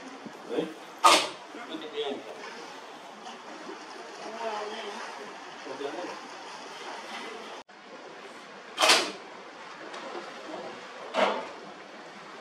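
Dolphins blow short, sharp breaths as they surface.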